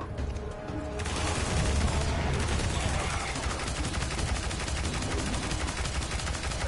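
A rapid-fire gun shoots in fast bursts.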